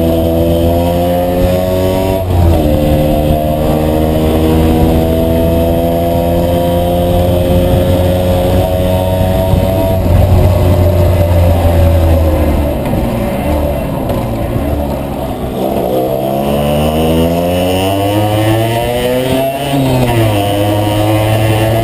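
A motorcycle engine hums close by, its pitch rising and falling as it shifts gears and speeds up.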